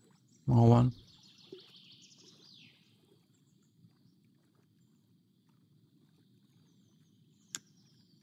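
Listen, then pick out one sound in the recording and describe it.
A fishing reel whirs as line is wound in.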